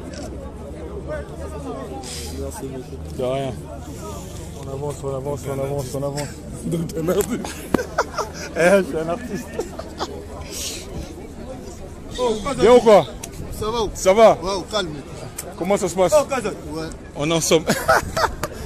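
A man talks with animation, close to a phone's microphone.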